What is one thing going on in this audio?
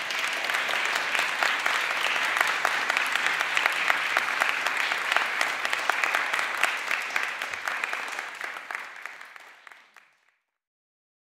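An audience claps and applauds in a large room, then the clapping fades away.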